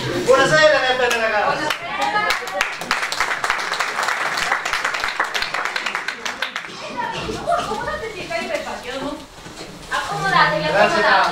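A woman speaks loudly and with animation in an echoing hall.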